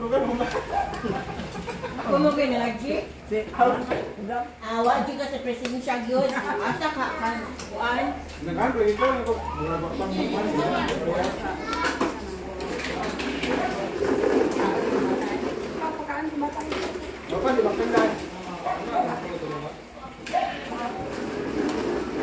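Serving spoons clink against dishes and plates.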